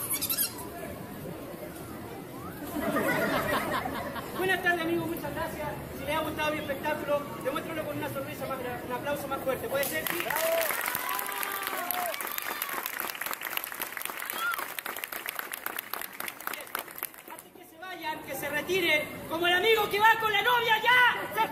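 A crowd of people chatters and murmurs outdoors.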